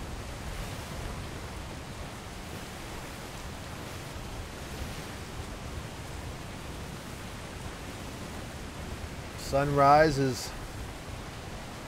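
Wind blows hard over open water.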